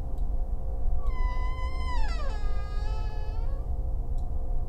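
A woman makes a short drawn-out sound with her voice close to a microphone.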